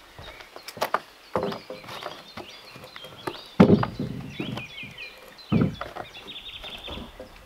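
Footsteps thud and knock on hollow wooden logs.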